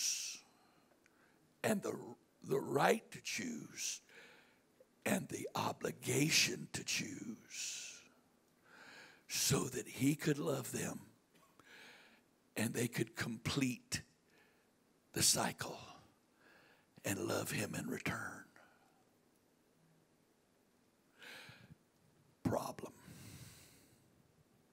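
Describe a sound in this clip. An older man speaks with animation into a microphone, heard through loudspeakers in a large room.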